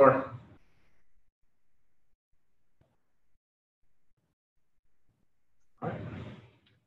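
A man speaks calmly through a microphone on an online call, pausing between phrases.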